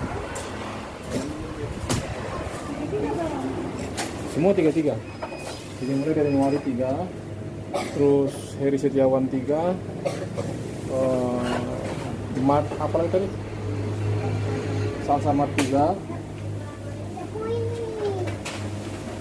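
A middle-aged man talks close by, calmly.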